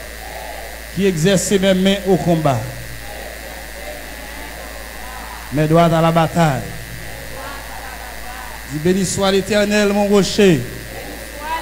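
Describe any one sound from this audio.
A man prays loudly and fervently through a microphone, in bursts.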